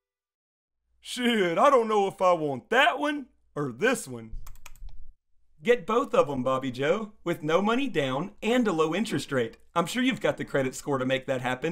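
A man speaks calmly in a conversation.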